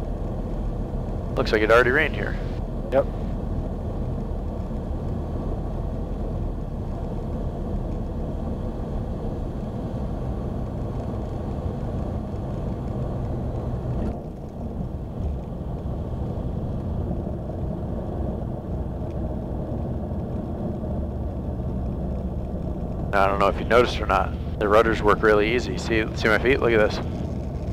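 A small propeller plane's engine drones steadily from close by.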